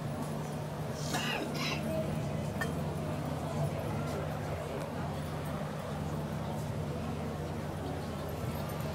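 A crowd murmurs softly.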